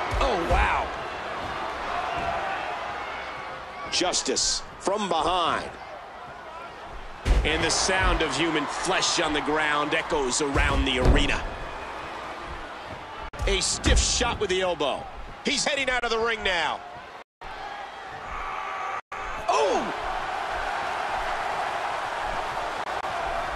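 A large crowd cheers and roars throughout.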